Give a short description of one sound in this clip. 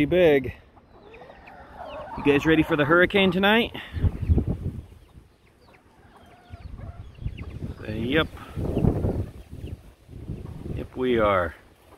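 Chickens scratch and rustle through dry leaves.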